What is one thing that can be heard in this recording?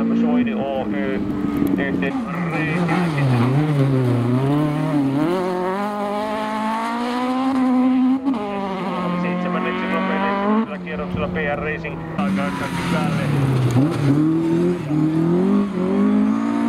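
A rally car engine revs hard, rising and falling as gears change.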